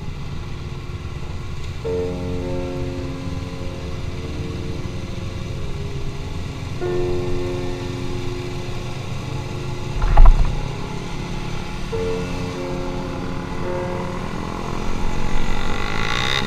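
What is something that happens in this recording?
A motorcycle engine rumbles and revs while riding.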